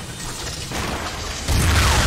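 A heavy impact crashes and debris scatters.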